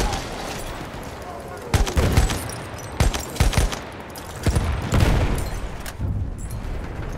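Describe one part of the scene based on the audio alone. Explosions boom and rumble around.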